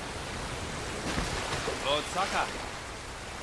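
A body plunges into water with a heavy splash.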